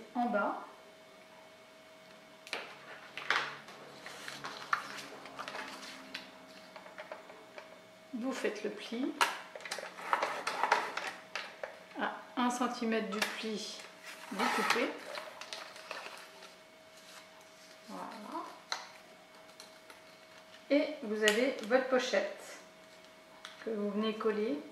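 Stiff paper rustles and taps as it is handled.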